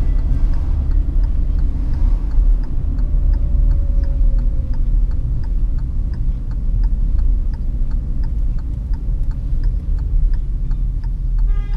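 A turn signal ticks rapidly and evenly.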